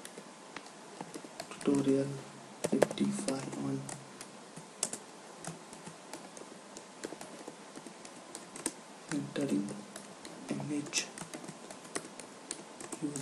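Keys clatter as someone types on a keyboard.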